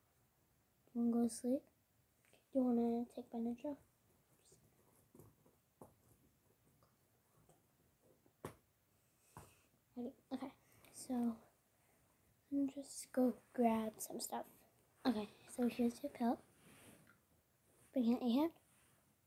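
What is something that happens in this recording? A young girl talks calmly and close by, in short bursts with pauses.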